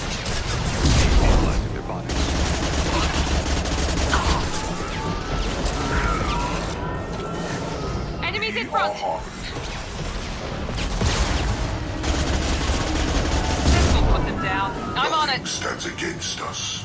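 A deep rumble booms under the gunfire.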